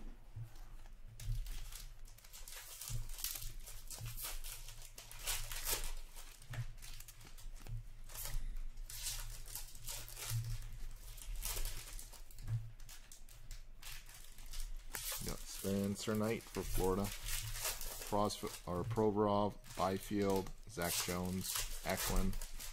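Trading cards rustle and click as they are sorted by hand.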